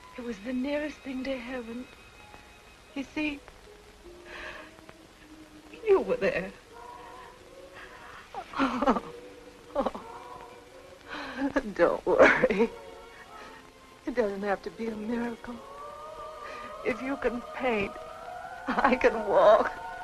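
A young woman speaks tearfully and with emotion, close by.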